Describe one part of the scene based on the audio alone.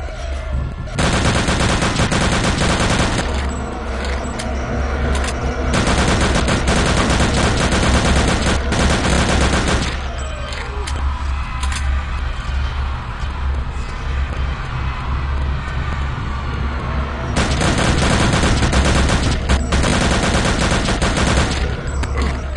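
A submachine gun fires in rapid, loud bursts.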